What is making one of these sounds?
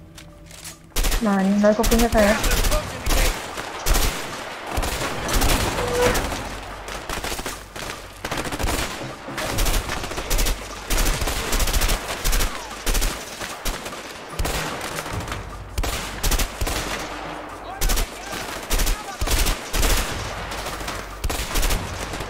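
Rifles fire in rapid, repeated bursts.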